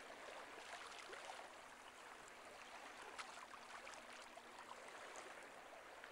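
Gentle waves lap and splash on open water.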